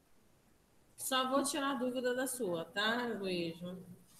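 A woman speaks with animation, heard close over an online call.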